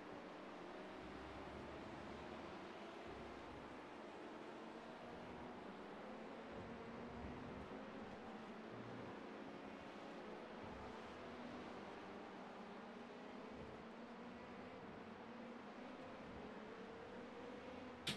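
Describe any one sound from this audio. A race car engine whines steadily, its pitch rising and falling through the gears.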